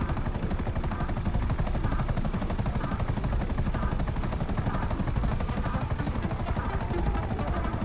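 A helicopter's rotor blades thump rapidly and steadily.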